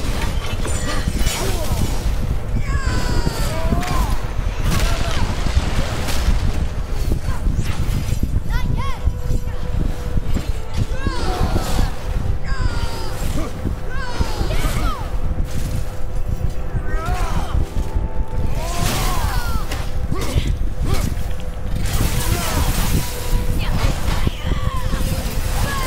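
Metal weapons clash and strike in a loud fight.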